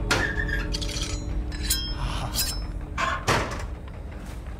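Metal blades scrape and ring sharply.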